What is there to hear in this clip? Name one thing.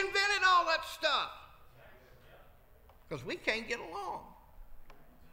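A middle-aged man preaches with animation through a microphone in a large echoing hall.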